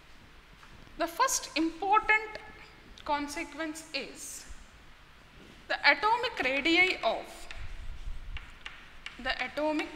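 A woman speaks calmly and clearly, as if teaching.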